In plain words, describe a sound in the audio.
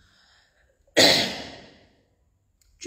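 A young woman coughs sharply close by.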